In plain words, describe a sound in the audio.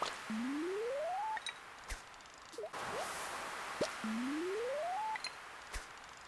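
A game's rising tone builds as a fishing rod is charged for a cast.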